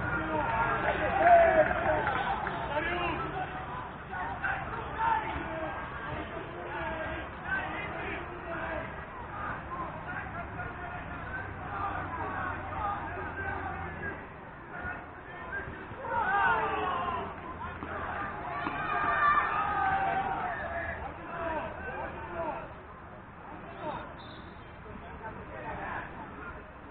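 Young men shout to each other in the distance outdoors.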